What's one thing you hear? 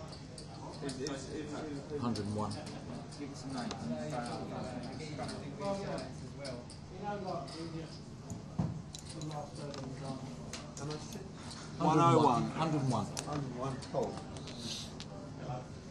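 Adult men talk nearby.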